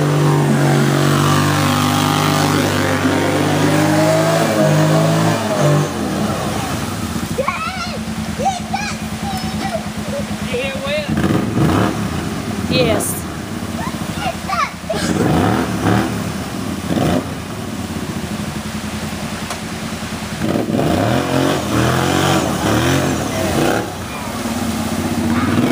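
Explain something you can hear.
A quad bike engine rumbles as it drives through a shallow river.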